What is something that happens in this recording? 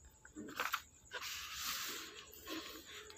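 A book page rustles as it is turned.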